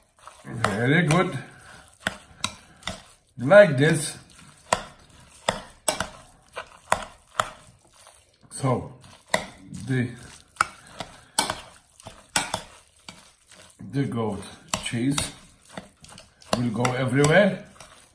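A metal spoon scrapes and clinks against a glass bowl.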